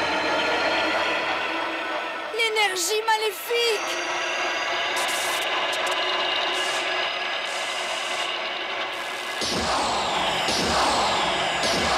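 A magical whirlwind swirls and hums steadily.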